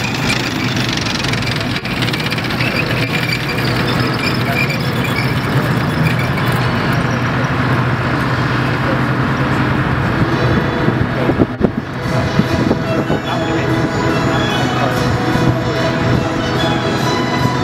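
Metal tracks clank and rattle over dirt.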